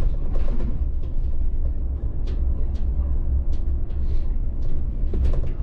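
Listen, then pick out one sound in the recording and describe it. A bus engine hums low and steady from inside the cab.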